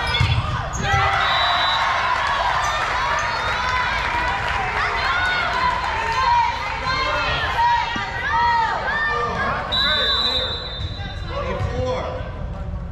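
Young women call out to each other across a large echoing gym.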